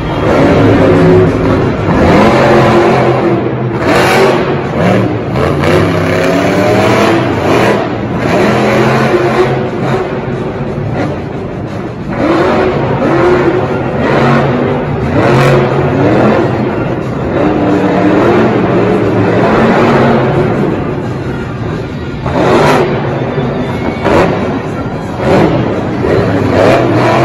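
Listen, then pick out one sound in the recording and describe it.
A monster truck engine roars and revs loudly.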